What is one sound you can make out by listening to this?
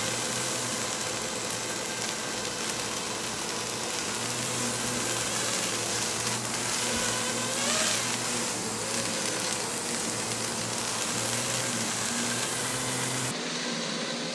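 A drone's rotors whine steadily nearby.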